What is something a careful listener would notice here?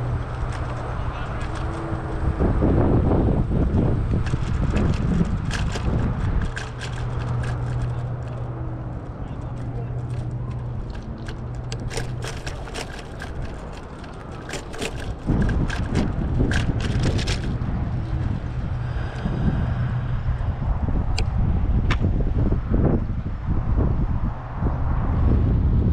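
Wind rumbles across a microphone outdoors while riding.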